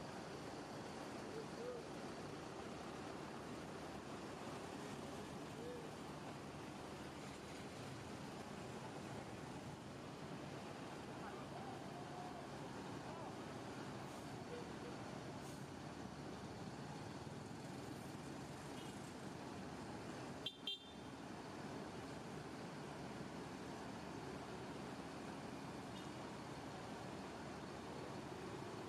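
A bus engine rumbles steadily as the bus slowly manoeuvres close by.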